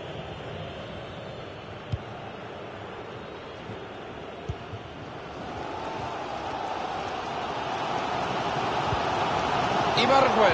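A stadium crowd roars steadily, swelling louder toward the end.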